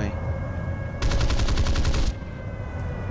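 Aircraft machine guns fire a rapid burst.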